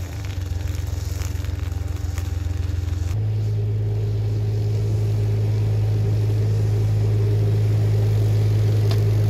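A boat engine chugs steadily with a low hum.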